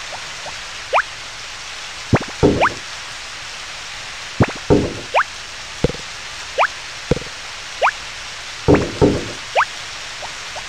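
Items drop into a wooden bin with short bright thuds.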